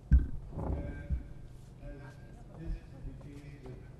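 An elderly man speaks calmly into a microphone through a loudspeaker in a large hall.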